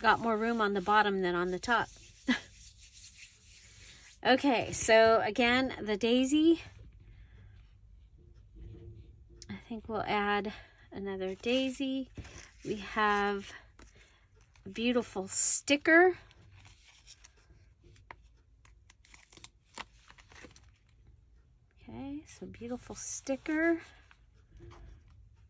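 Paper rustles and crinkles softly as it is handled.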